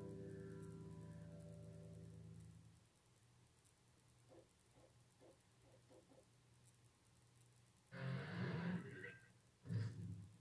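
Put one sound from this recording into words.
Music plays from a television's speaker.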